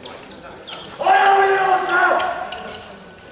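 A man shouts loudly in a large echoing hall.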